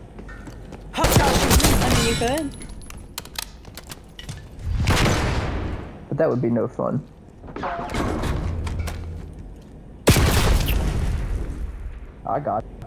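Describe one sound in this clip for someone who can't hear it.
Guns fire loudly in short, sharp bursts with echoes.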